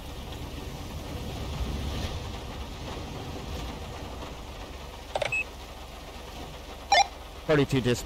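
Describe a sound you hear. A car engine runs as a car drives off.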